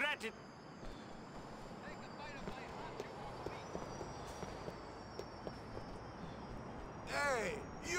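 Footsteps tap softly on pavement.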